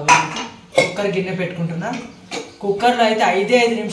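A metal pot clanks onto a stove.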